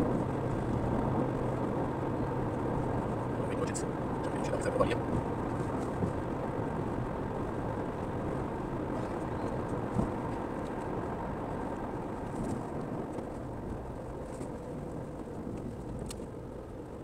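A car engine hums steadily inside the car as it drives.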